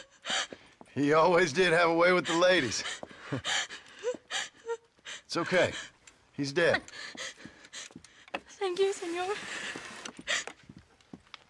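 A young woman speaks in a shaken, tearful voice.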